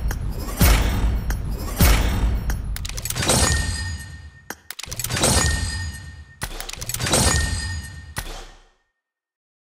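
Bright game reward chimes and whooshes play in quick bursts.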